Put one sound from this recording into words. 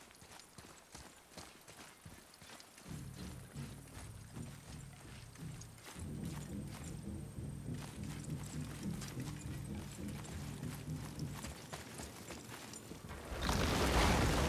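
Heavy footsteps thud and crunch at a running pace.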